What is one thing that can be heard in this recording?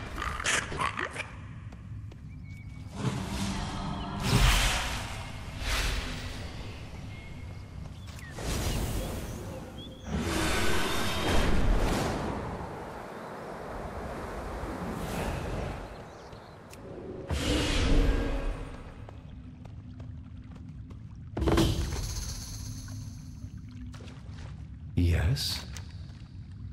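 Magical spells burst with whooshing, crackling blasts.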